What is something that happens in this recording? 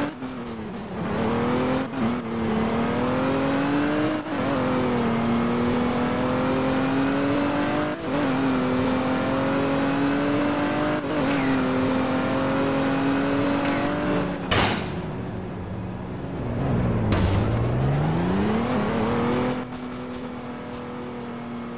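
A car engine hums steadily, its pitch rising and dropping as it shifts gears.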